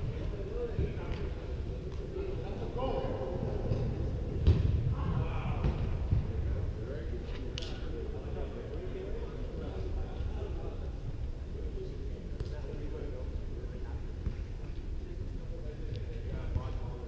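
Young men shout and call to each other from across a large echoing indoor hall.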